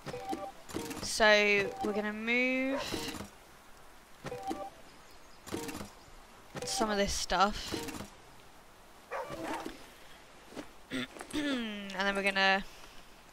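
A young woman speaks with animation into a close microphone, drawing out some words in a singsong way.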